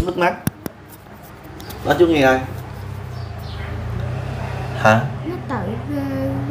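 A young girl speaks softly in short phrases close by.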